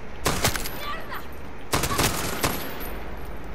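A gun fires short, loud bursts of shots.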